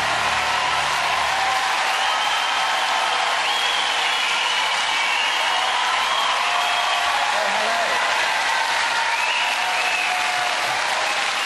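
Young girls in the crowd cheer and scream excitedly.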